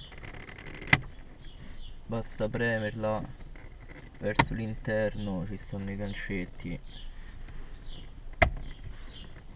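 A gear lever clunks into place.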